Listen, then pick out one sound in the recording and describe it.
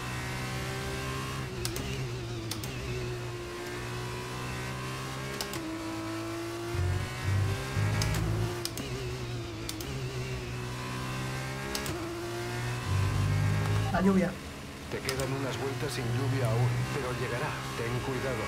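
A racing car engine whines at high revs, rising and dropping as it shifts gears.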